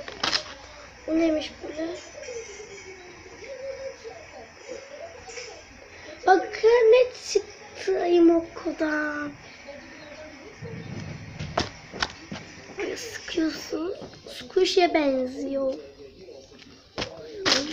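A young girl talks close by, softly and chattily.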